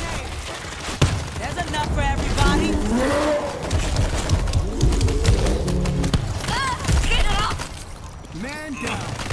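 Blows thud against bodies in a brawl.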